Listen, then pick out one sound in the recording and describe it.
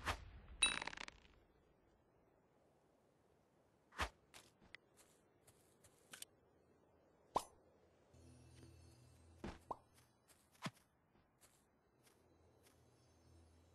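Game sound effects of blows and hits sound in short bursts.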